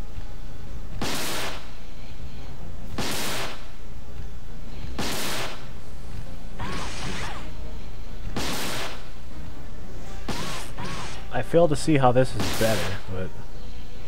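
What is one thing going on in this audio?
Gunshots boom at a steady pace.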